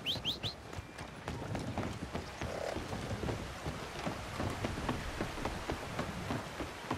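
Water rushes steadily in a river nearby.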